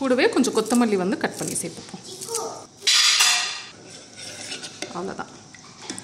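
A metal spoon scrapes and clinks against a pot while stirring.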